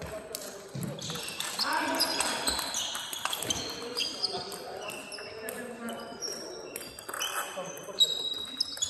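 A table tennis ball clicks back and forth off paddles and the table in an echoing hall.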